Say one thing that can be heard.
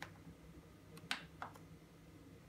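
A button on a rice cooker clicks.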